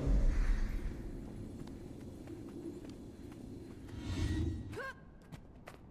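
A magic spell crackles and hums.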